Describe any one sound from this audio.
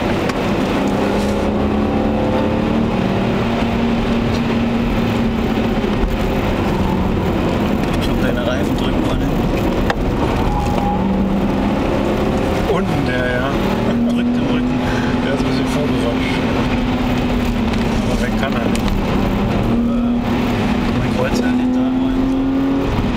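A car engine drones loudly from inside the car, its pitch rising and falling as it speeds up and slows down.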